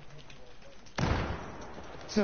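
A gunshot cracks once.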